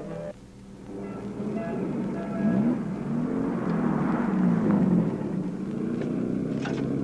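A car drives up and stops.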